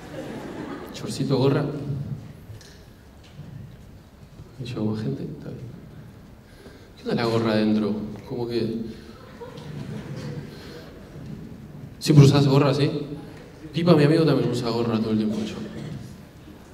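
A young man speaks casually through a microphone, pausing between phrases.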